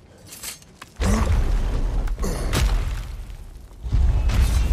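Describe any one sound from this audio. Heavy doors are shoved open with a loud, deep rumble.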